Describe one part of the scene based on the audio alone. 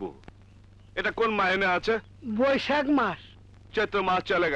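A man speaks in a deep, firm voice, close by.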